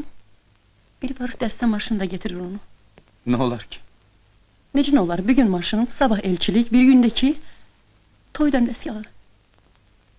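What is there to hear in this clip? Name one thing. A woman speaks slowly and sadly, close by.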